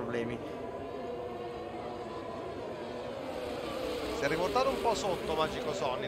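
Racing car engines whine at high revs, with pitch shifting as the cars brake and accelerate.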